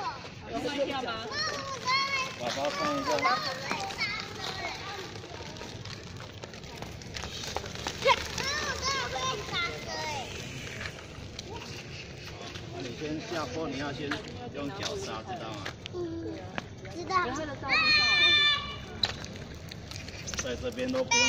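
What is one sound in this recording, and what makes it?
A young child talks and shouts excitedly close by.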